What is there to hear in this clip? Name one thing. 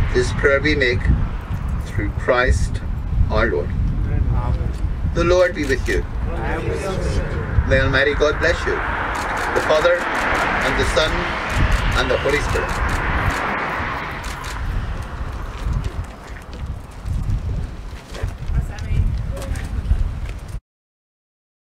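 An elderly man speaks calmly through a microphone outdoors.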